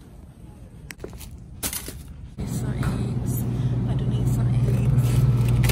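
A shopping cart rattles as it rolls.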